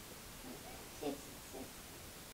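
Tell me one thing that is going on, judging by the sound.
A small boy giggles.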